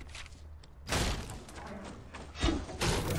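Wooden building pieces snap into place with sharp knocks.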